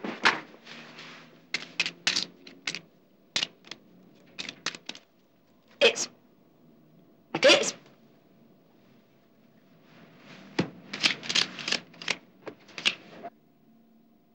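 Playing cards are slapped down and shuffled on a table in quick bursts.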